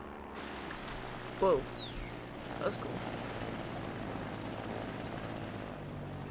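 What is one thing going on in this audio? Something splashes heavily into water.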